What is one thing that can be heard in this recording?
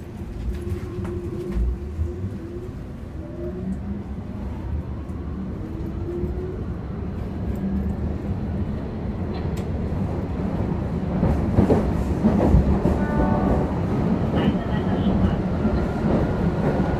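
A subway train rumbles along steadily, growing louder.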